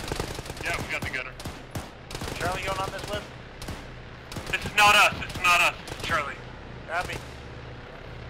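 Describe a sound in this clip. Rifle shots crack in quick bursts and echo.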